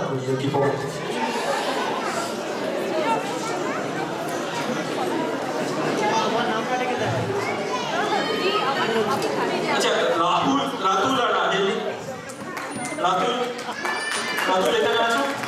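A group of women chatter and laugh.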